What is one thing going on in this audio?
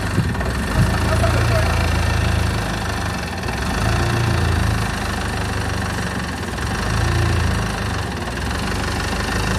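A forklift engine rumbles and idles close by.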